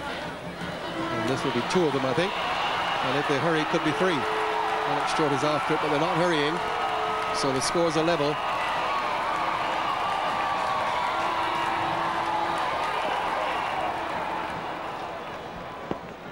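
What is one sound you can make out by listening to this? A large crowd cheers and applauds in an open stadium.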